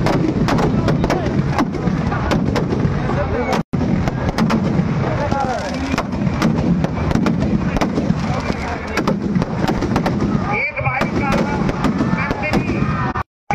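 Firecrackers crackle and bang in rapid bursts outdoors.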